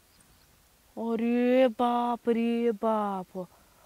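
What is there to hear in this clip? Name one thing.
A young woman sings a slow, drawn-out melody.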